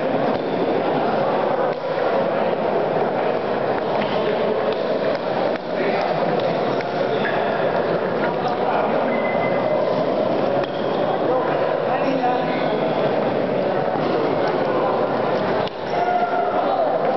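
A table tennis ball clicks back and forth on paddles and the table.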